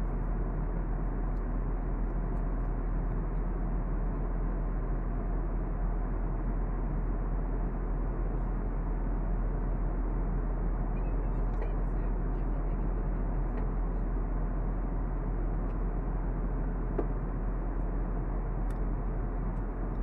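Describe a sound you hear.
A jet engine roars steadily in the cabin of a plane in flight.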